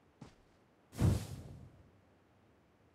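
A flare gun fires with a loud whoosh.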